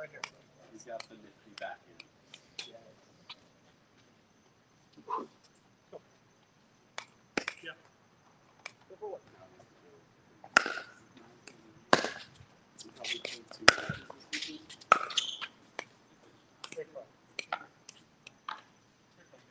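Paddles pop sharply against a plastic ball outdoors.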